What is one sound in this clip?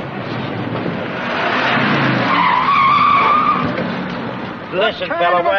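A car engine rumbles as a car drives past.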